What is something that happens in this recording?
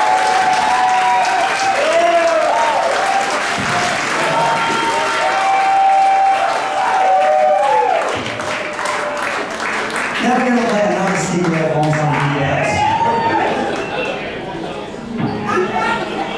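A rock band plays loudly with electric guitars.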